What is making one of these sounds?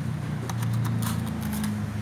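A plug clicks into a wall socket.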